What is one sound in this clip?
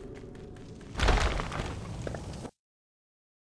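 A heavy body thuds down into grass.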